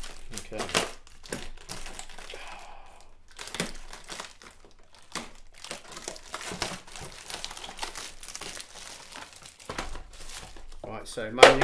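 Cardboard rustles and scrapes as a box is opened by hand.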